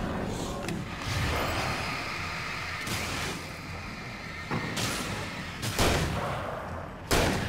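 Explosions boom and roar loudly.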